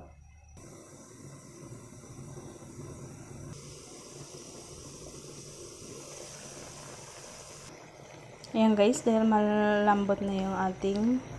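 Food bubbles and simmers in a covered pot.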